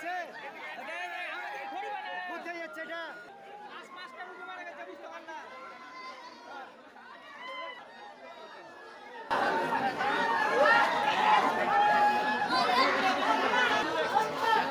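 A crowd of men and women shout and talk over one another close by.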